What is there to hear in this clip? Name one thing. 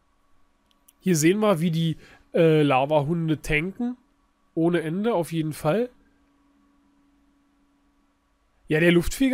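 A man talks with animation, close to a microphone, in short bursts with pauses.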